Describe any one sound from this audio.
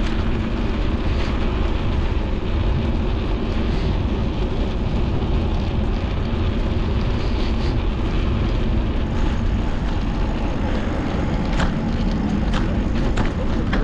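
Wind buffets loudly and steadily against a moving rider.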